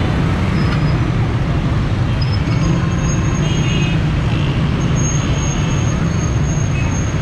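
Motorcycle engines idle and rumble close by in busy traffic.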